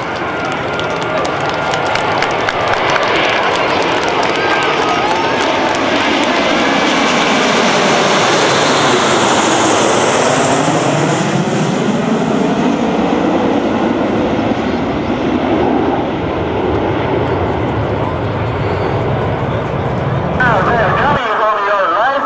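Jet engines roar loudly overhead, rising as the planes pass low and then fading away.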